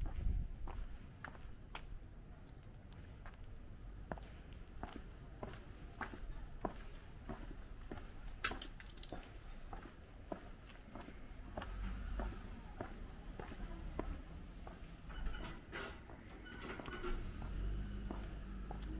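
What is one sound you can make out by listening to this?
Footsteps tap steadily on pavement outdoors.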